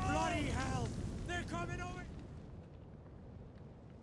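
Catapults launch flaming missiles.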